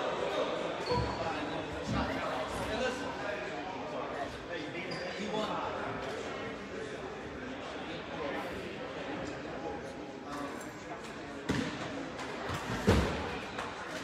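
A basketball thumps as it bounces on a wooden floor.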